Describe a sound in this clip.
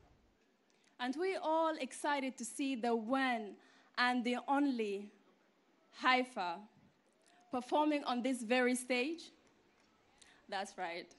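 A young woman speaks clearly into a microphone in a large hall.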